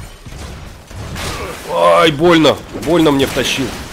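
A large metal machine crashes and bangs in a fight.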